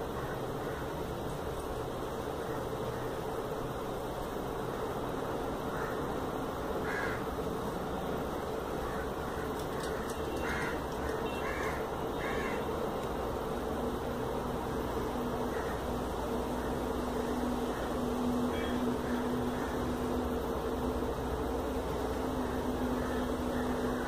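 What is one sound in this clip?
Small scissors snip through thread.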